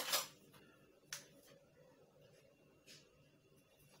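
A metal spoon clinks against a metal pan.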